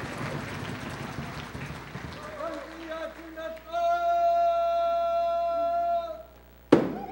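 A group of people sings together on a stage.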